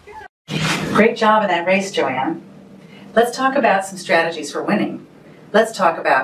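An older woman speaks close by with animation.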